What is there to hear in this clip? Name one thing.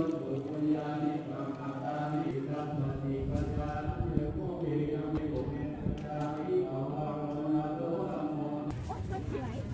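A group of people chants together in a steady drone.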